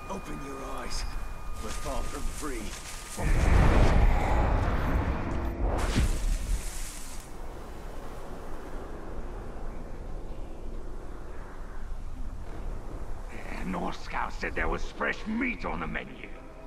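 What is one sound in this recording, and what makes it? Leaves rustle as someone creeps through low bushes.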